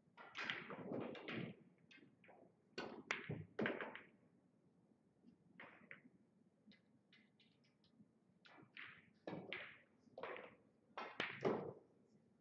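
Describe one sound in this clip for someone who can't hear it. Billiard balls clack together.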